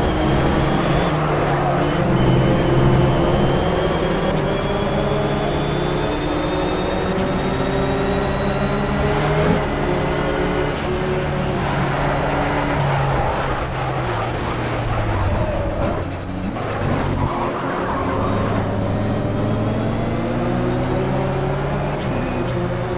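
A racing car engine roars loudly, rising and dropping in pitch as the gears change.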